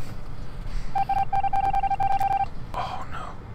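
A steady electronic tone hums briefly.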